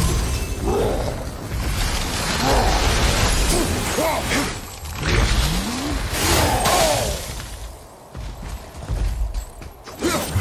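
Heavy blows and crashes ring out in a fight.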